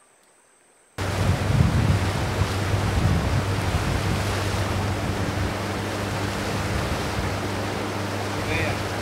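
A boat's motor hums steadily close by.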